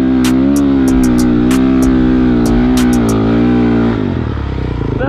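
A motorbike engine revs loudly and close by.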